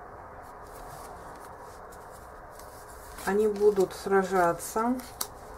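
A playing card slides softly onto a cloth surface.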